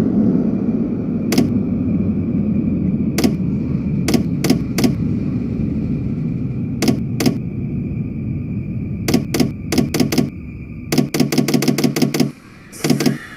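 A train rumbles along the rails and slows to a stop.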